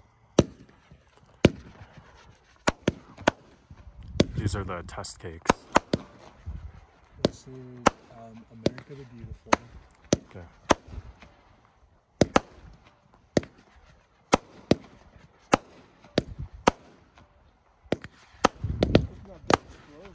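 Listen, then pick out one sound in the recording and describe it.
Fireworks burst with sharp, loud bangs again and again.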